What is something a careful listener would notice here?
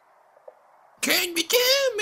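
A high cartoonish voice shouts excitedly, close to the microphone.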